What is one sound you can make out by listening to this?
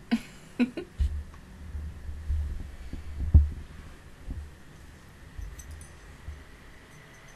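Hands rub against a microphone with a low rumbling.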